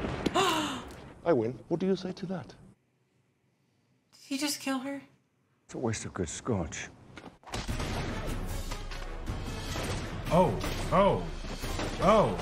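A woman gasps in surprise.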